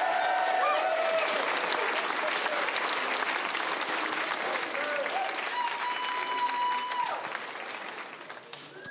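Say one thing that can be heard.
A large crowd cheers and applauds loudly in a big hall.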